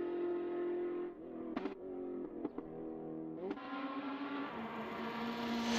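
A race car engine roars and shifts gears as the car speeds along a winding road.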